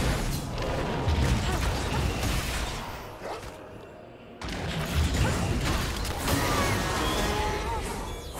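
Game spells and hits clash and burst in a fight.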